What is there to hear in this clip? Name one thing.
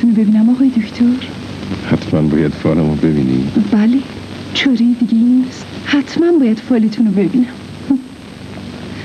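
A middle-aged man speaks loudly and with animation.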